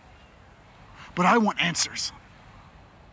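A young man speaks briefly nearby.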